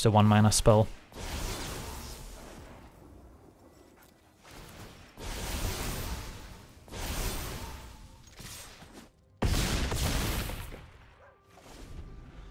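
Magical whooshing effects swell and fade several times.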